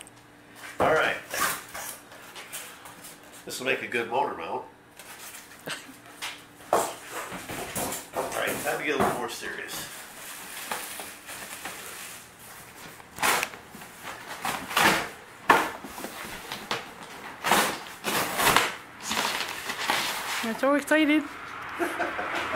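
A middle-aged man talks calmly, close by.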